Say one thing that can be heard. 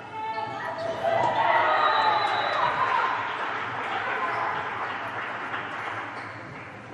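A crowd of young women cheers loudly after a point.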